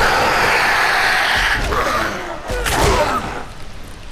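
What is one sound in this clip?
A heavy blade hacks into a body with a wet thud.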